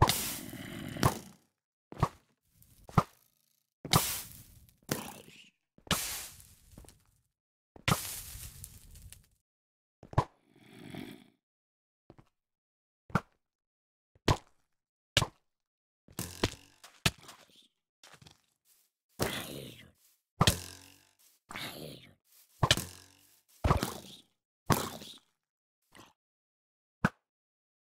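A bow twangs as arrows are fired again and again.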